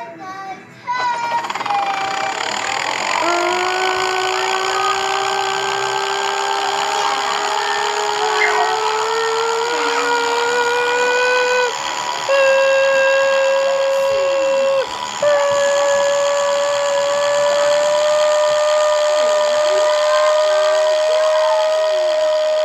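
Helicopter engines hum steadily, slowly rising in pitch.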